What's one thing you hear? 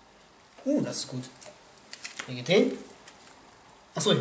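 Playing cards slide and snap as a deck is shuffled.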